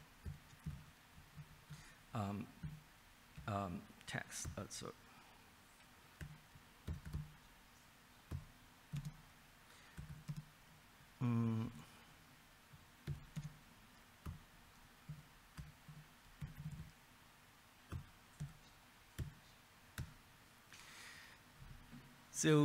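Keys clatter on a keyboard in short bursts.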